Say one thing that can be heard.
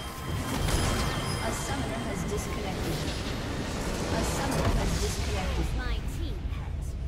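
Game battle effects crash and explode loudly.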